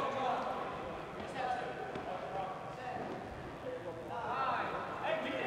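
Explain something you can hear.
Players call out and chatter in a large echoing hall.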